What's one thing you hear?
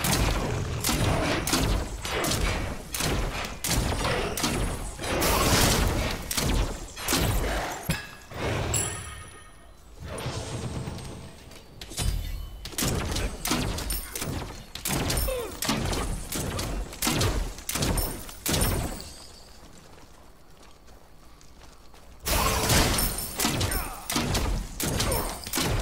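Game weapon strikes thump and clash in quick bursts.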